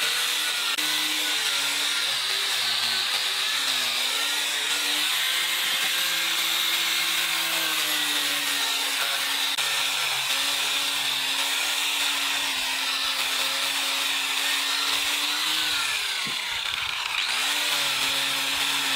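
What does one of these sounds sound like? An electric sander whirs steadily against wood.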